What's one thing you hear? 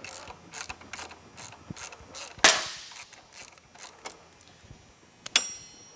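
A metal wrench ratchets and clinks against metal parts.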